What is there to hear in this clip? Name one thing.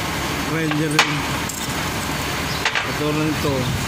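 Metal clanks sharply.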